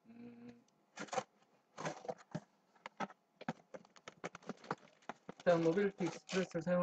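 Cardboard box flaps scrape and thump as a box is opened.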